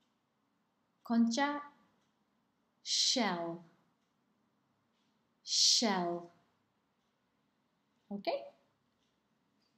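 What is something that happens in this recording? A woman speaks close to a microphone in short, separate phrases.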